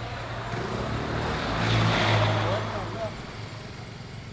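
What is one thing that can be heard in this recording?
A van drives past with a brief rising and fading whoosh.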